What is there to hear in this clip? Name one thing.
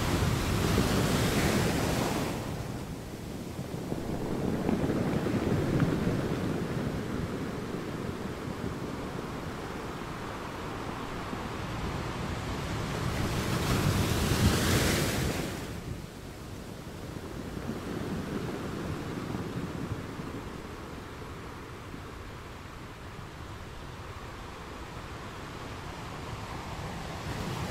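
Water washes and fizzes over rocks.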